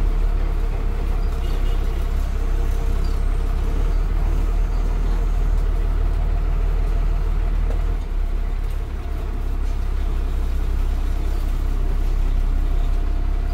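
A bus rattles and shakes as it drives.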